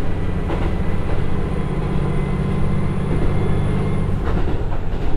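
A train's diesel engine drones steadily, then eases off.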